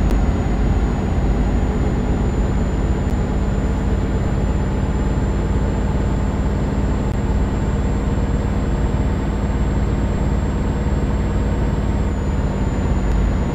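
A truck engine hums steadily and low while driving.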